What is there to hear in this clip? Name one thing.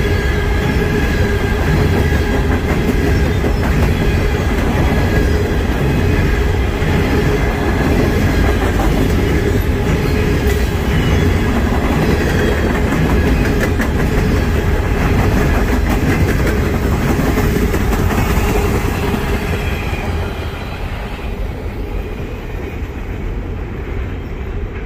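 Steel wheels squeal and clatter on the rails.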